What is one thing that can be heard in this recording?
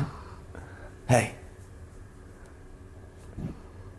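A hand softly strokes a dog's fur.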